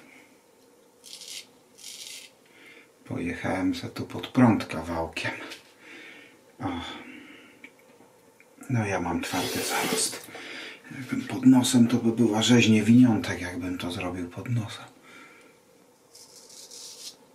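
A razor scrapes stubble.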